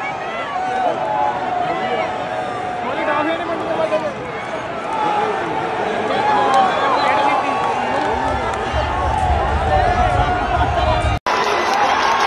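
A large stadium crowd sings together loudly in the open air.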